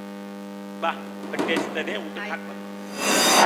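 A man speaks with animation through a microphone on a stage.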